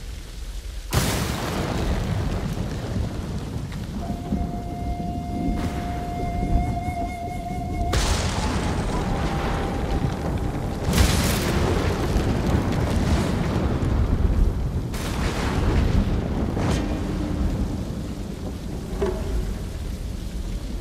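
Heavy rain pours down outdoors in gusty wind.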